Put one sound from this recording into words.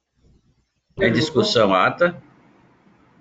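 An elderly man speaks briefly over an online call.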